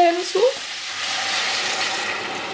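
Water pours into a pot.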